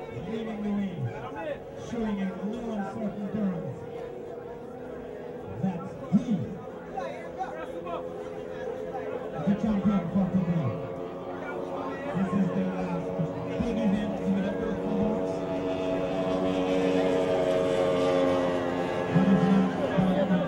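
A powerboat engine roars steadily in the distance, growing louder.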